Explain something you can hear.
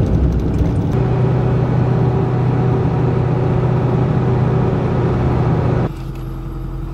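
Tyres hum steadily on a smooth paved road.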